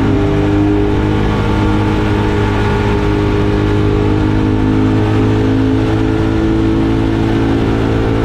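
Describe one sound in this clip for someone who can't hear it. A Ducati motorcycle engine rumbles while cruising through an echoing tunnel.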